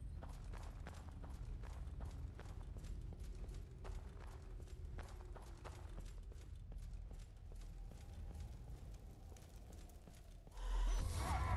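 Armoured footsteps crunch over snow.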